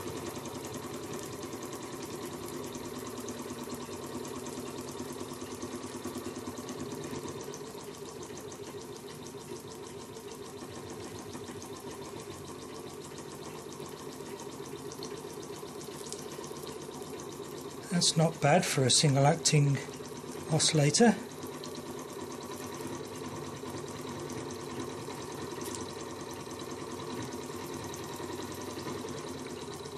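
A small steam engine runs with a fast, steady chuffing.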